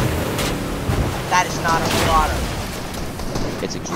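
A motorboat engine roars over splashing water.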